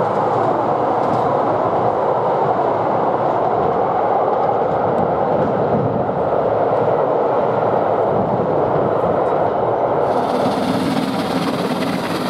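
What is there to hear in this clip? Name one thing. A steam train rumbles along the tracks, far off at first and then close by.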